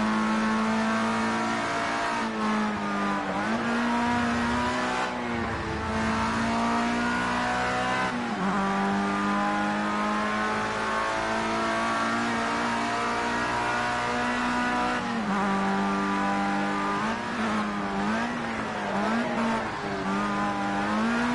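A racing car engine screams at high revs, dropping in pitch on downshifts and rising again.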